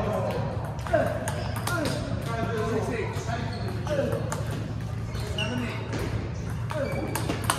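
A ping pong ball clicks back and forth on paddles and a table.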